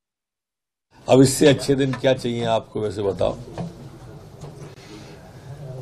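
A middle-aged man speaks firmly into microphones.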